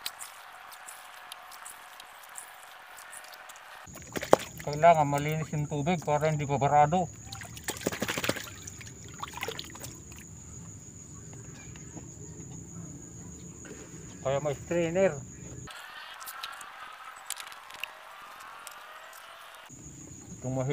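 Liquid pours and splashes into a container.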